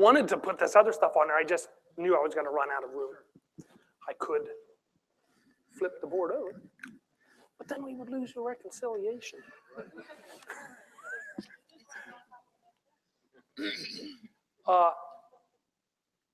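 A middle-aged man speaks with pauses to an audience, heard through a microphone.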